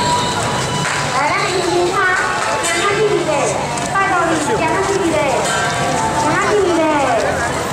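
A crowd chatters close by outdoors.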